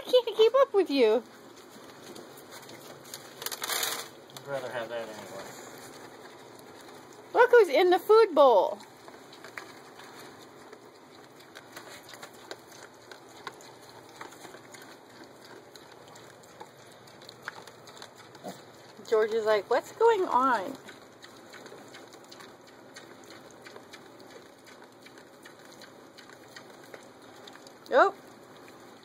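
Piglets grunt and snuffle softly.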